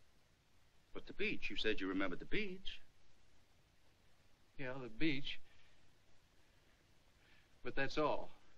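An older man speaks firmly nearby.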